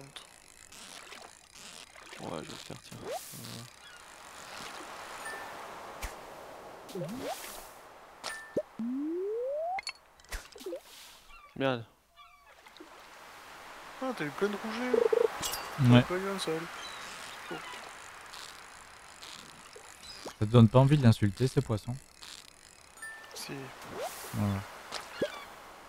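A fishing reel whirs and clicks in quick bursts.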